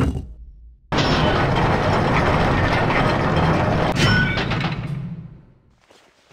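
Heavy gears grind and clank as they turn.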